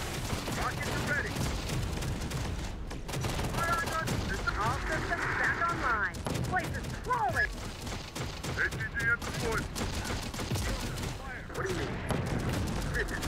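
Gunfire crackles in bursts.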